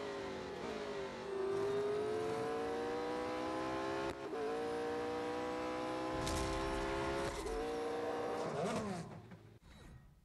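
A racing car engine roars at high speed, rising in pitch as it shifts up through the gears.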